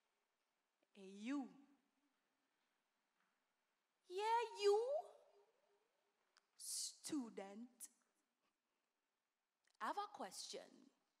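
A young woman speaks slowly into a microphone, with long pauses.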